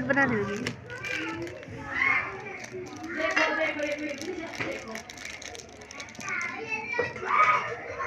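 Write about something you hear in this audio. A plastic snack wrapper crinkles in someone's hands.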